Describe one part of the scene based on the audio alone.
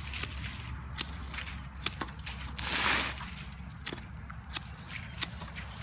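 Pruning shears snip sharply through plant stems.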